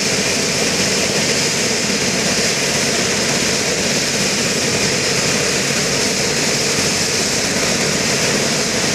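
Helicopter rotor blades thump rapidly as they spin.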